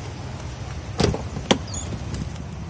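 A car door opens with a click.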